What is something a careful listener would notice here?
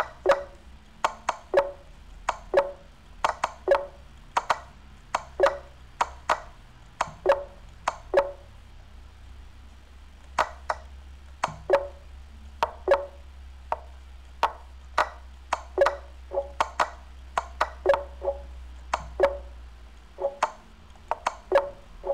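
Short wooden clicks of chess pieces being moved sound in quick succession.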